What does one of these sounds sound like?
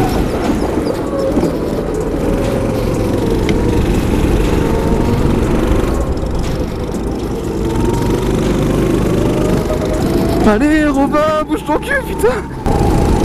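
A small kart engine whines loudly up close, its pitch rising and falling.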